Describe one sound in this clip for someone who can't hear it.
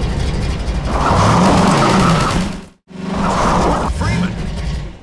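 A buggy engine hums and revs.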